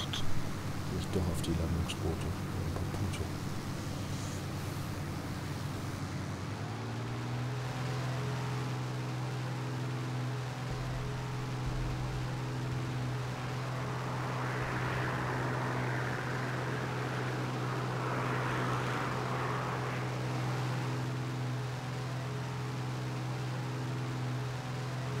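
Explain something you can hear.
A propeller plane's engine drones steadily up close.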